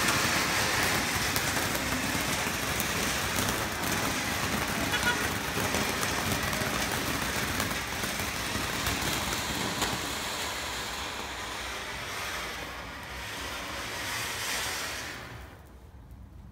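A fountain firework hisses and crackles loudly, spraying sparks.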